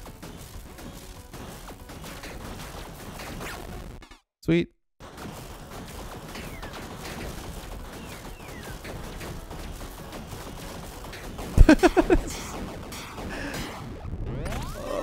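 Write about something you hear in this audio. Rapid electronic zaps and blasts of game shooting crackle on.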